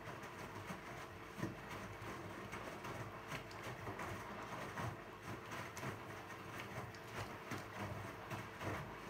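A washing machine drum turns with a steady hum.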